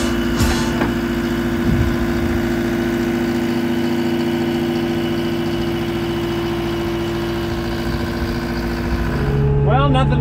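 A diesel engine idles with a steady, low drone.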